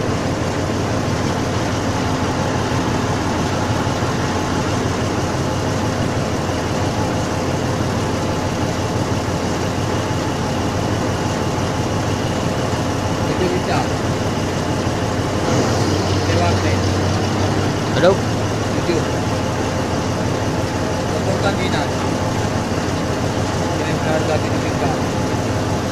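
A crane's diesel engine idles with a steady rumble.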